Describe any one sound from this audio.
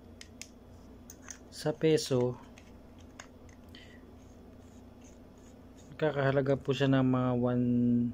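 Plastic parts click and rattle in someone's hands.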